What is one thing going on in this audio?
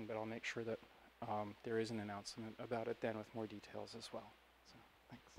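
An elderly man speaks calmly, close to the microphone.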